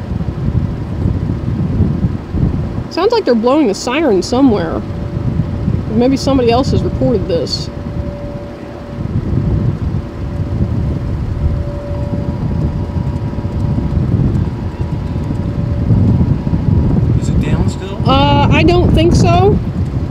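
Wind blows across open ground with a low, steady rumble.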